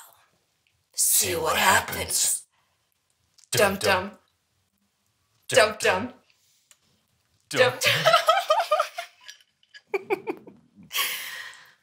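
A man speaks with amusement up close.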